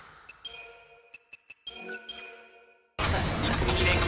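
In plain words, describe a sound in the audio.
Short electronic beeps chime as menu options are selected.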